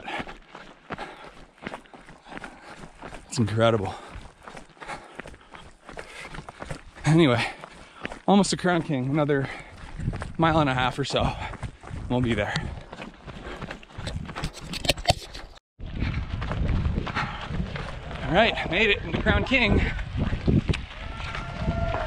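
Footsteps crunch on a gravel trail.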